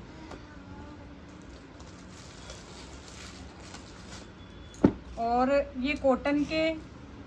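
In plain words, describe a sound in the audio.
Fabric rustles as a woman handles cloth.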